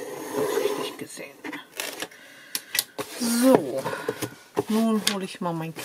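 Paper rustles as a sheet is moved.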